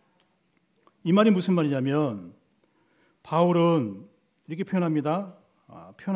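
A man speaks slowly and calmly into a microphone.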